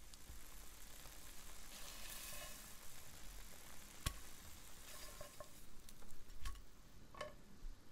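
Eggs sizzle in a frying pan.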